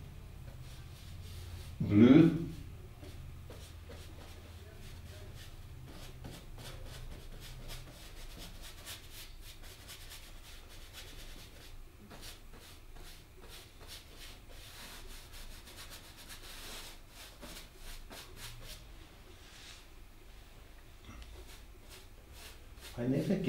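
A paintbrush dabs and scrapes softly on canvas.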